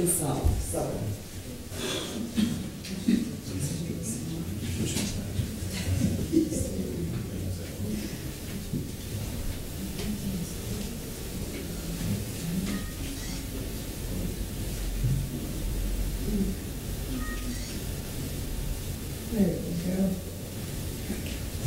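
People chat quietly nearby.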